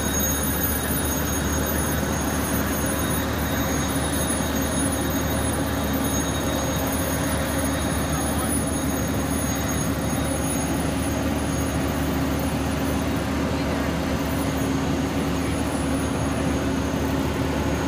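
Water from fire hoses hisses and sprays steadily.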